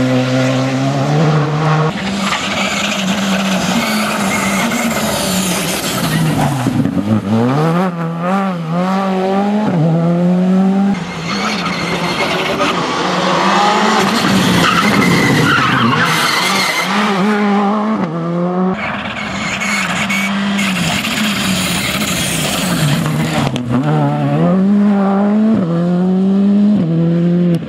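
Rally car engines roar loudly at high revs, rising and falling as the cars shift gears.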